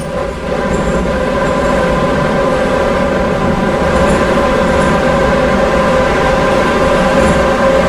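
An electric train motor hums with a steady whine.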